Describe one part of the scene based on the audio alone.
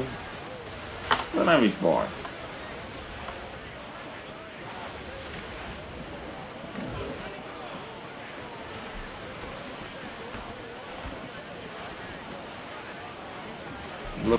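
Waves wash against a wooden sailing ship's hull at sea.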